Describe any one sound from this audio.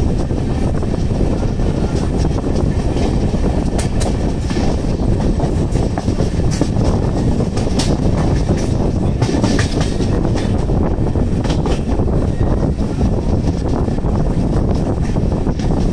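A train rumbles steadily along the tracks, wheels clattering on the rails.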